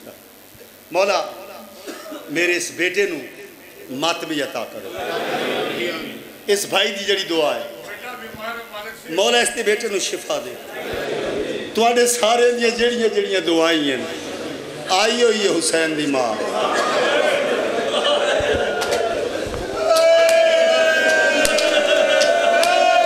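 A man chants loudly through a microphone and loudspeakers in an echoing hall.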